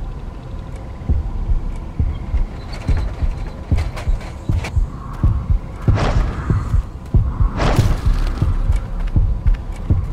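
Footsteps thud quickly on soft ground.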